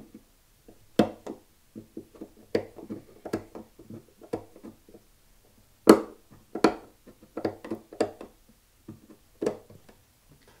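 A metal tool clicks and taps against a guitar fret.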